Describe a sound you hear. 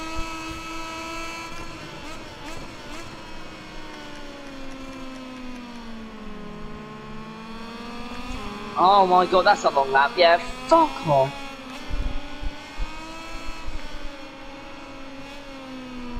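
A motorcycle engine whines steadily, its pitch falling and rising through the gears and corners.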